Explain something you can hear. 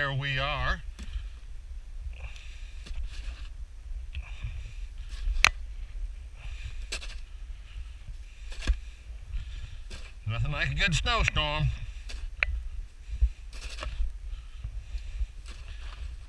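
A snow shovel scrapes and pushes through deep snow.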